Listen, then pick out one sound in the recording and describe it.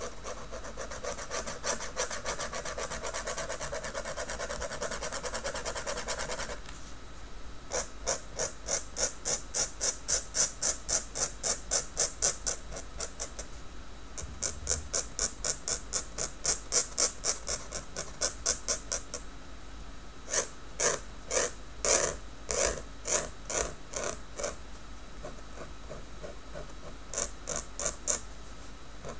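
A pen nib scratches rapidly across paper in quick strokes.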